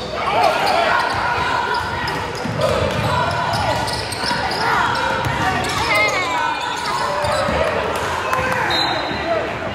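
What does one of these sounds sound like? A crowd chatters and cheers in a large echoing gym.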